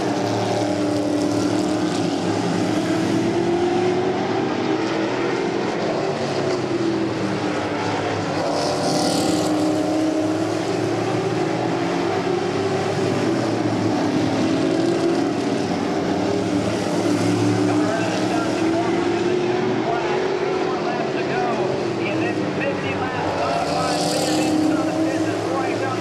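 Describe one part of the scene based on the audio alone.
Race car engines roar loudly, rising and falling in pitch as they go around the track.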